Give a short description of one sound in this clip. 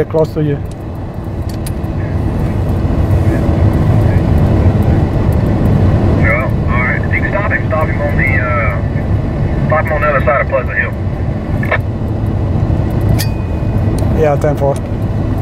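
A car engine hums and tyres rumble steadily on a highway.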